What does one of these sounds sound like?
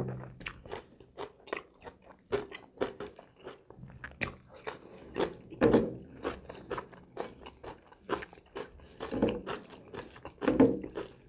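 Fingers squish and mix food on a plate.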